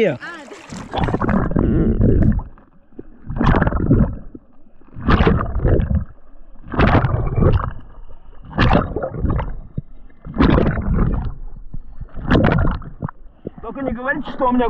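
Water rushes and gurgles in bursts underwater as a swimmer strokes.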